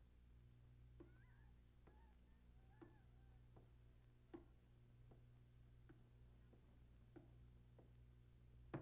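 Footsteps thud slowly up wooden stairs.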